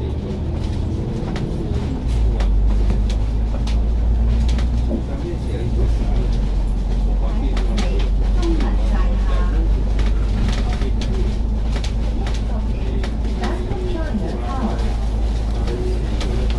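A bus engine rumbles steadily while driving.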